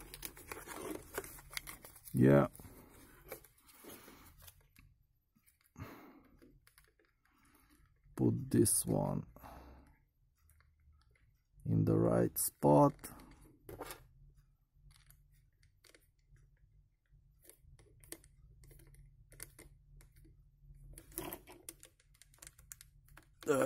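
Small plastic and metal parts click and rattle as hands handle them.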